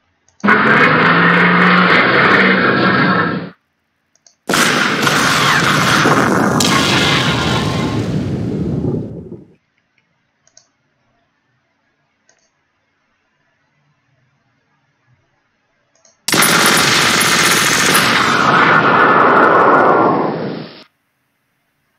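Cannon fire and explosions boom in loud rumbling bursts.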